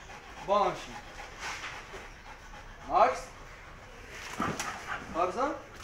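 A man gives short, firm commands to dogs nearby.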